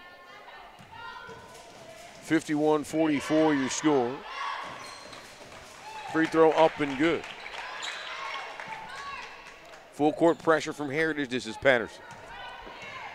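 Basketball shoes squeak sharply on a wooden floor.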